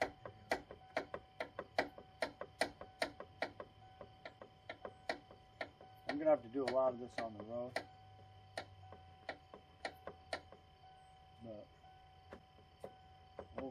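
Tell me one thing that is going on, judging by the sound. A ratchet wrench clicks in quick, steady strokes.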